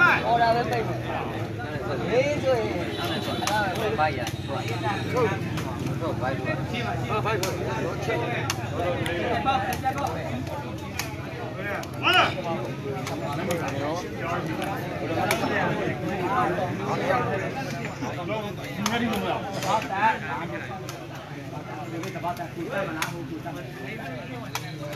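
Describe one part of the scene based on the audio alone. A large outdoor crowd of men chatters and shouts throughout.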